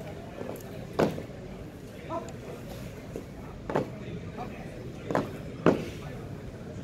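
Boots stamp on a mat in drill.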